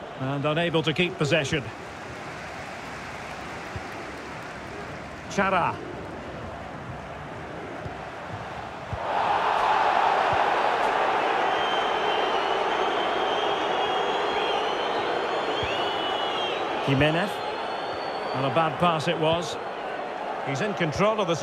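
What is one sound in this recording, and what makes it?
A large stadium crowd roars steadily, growing louder partway through.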